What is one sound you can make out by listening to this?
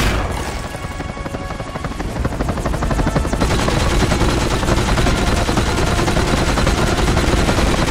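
A jetpack roars steadily.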